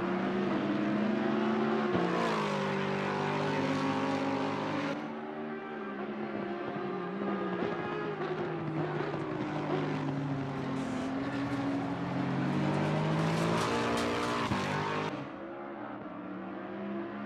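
A racing car engine roars loudly, its pitch rising and dropping with gear changes.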